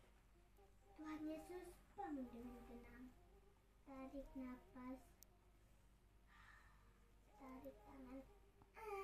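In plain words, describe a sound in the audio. A young child speaks and sings playfully close by.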